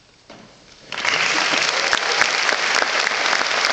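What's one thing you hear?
An audience breaks into loud applause.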